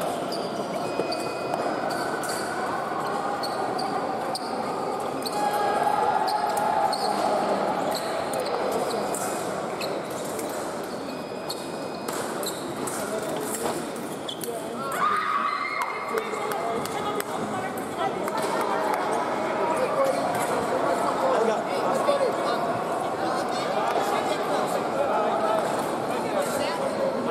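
Fencing blades clink and clatter in the distance.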